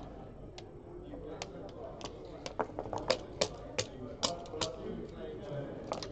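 Game pieces click sharply against a board as they are moved.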